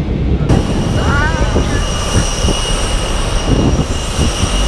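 A young woman laughs and talks excitedly close by.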